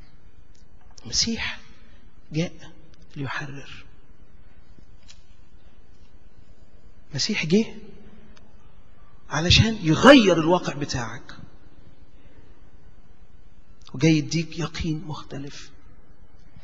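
A middle-aged man preaches passionately into a microphone, in short bursts with pauses, sometimes shouting.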